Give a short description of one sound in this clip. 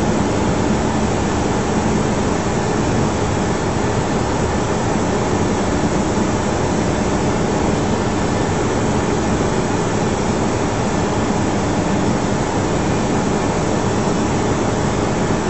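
Jet engines roar steadily with a low hum.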